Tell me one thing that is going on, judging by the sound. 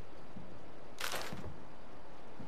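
A short whooshing interface sound plays as a menu opens.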